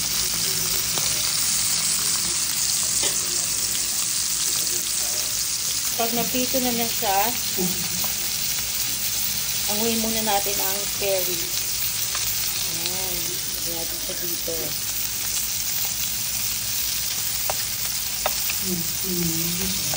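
Meat sizzles steadily in hot oil in a frying pan.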